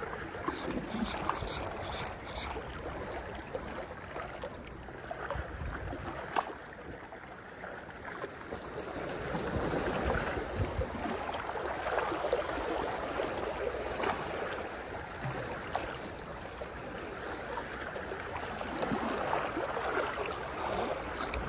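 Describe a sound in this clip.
Waves wash against the shore in the distance, rising and falling.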